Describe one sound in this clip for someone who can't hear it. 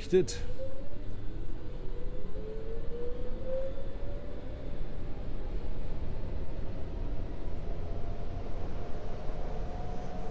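A train's electric motor whines and rises steadily in pitch.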